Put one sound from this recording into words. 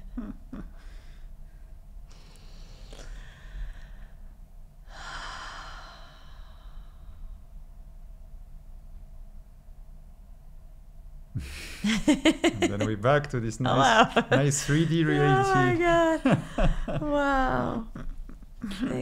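A woman laughs heartily close to a microphone.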